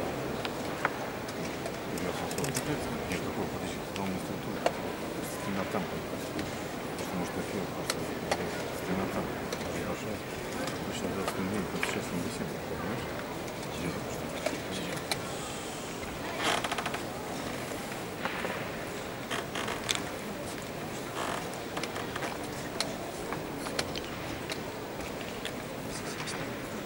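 A crowd murmurs indoors in the background.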